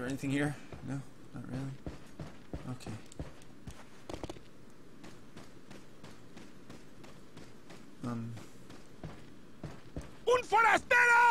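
Footsteps crunch steadily over soft ground.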